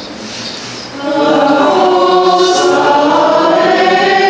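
A man sings a chant in an echoing hall.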